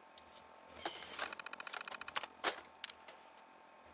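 Menu selections click sharply.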